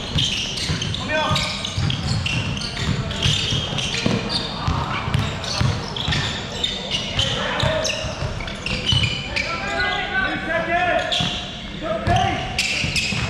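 Young men shout to each other across an echoing court.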